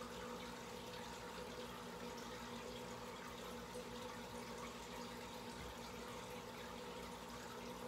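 Air bubbles fizz and burble steadily in an aquarium.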